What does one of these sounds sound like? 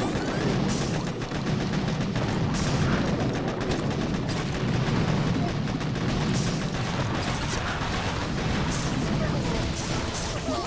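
Gunfire and explosions crackle through a busy battle.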